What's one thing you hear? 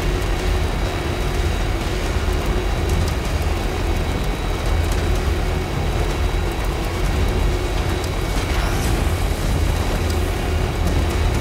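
A heavy truck engine rumbles steadily as the truck drives along a road.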